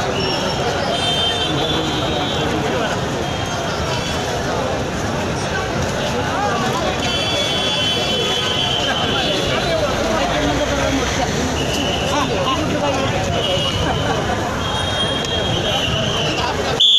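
A large crowd of men chatters and murmurs nearby outdoors.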